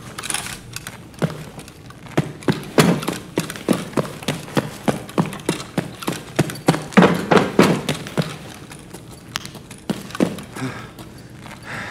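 Footsteps crunch steadily over gritty ground.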